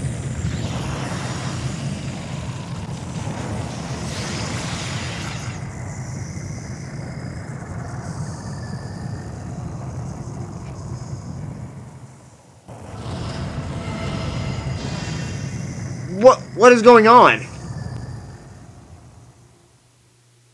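Electricity crackles over a deep, steady rumble.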